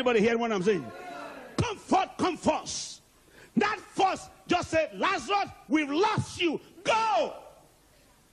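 A man preaches loudly with animation through a microphone in a large echoing hall.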